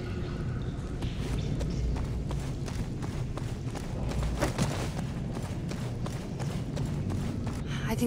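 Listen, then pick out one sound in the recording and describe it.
Footsteps thud on soft ground.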